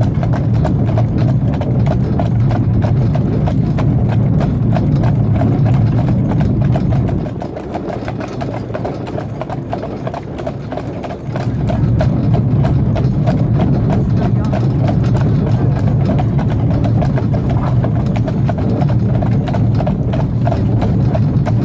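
Carriage wheels rumble over the road.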